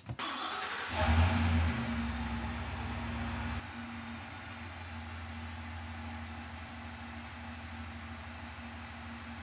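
A truck engine idles with a low hum.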